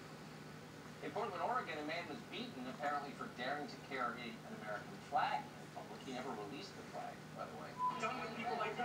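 A man talks steadily, heard through a television speaker.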